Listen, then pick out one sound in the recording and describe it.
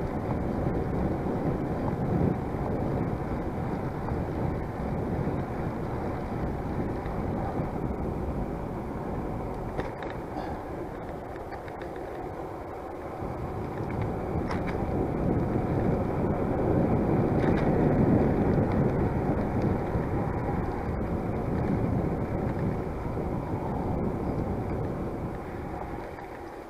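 Bicycle tyres hum on a paved path.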